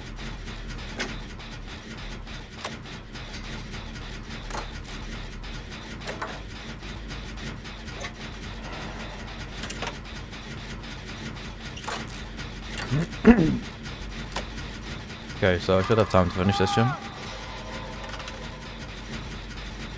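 Metal parts of a machine click and rattle as hands tinker with them.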